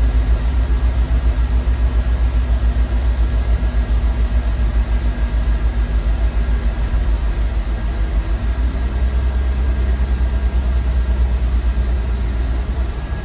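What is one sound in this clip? A vehicle engine rumbles steadily from inside the cab while driving.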